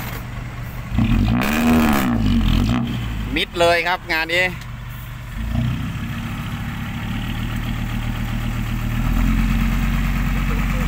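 A truck's diesel engine rumbles and revs while stuck in soft ground.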